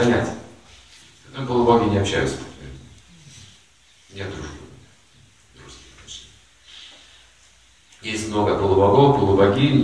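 An elderly man speaks calmly and slowly, with pauses.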